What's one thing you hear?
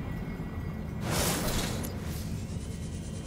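A burst of rushing water whooshes briefly.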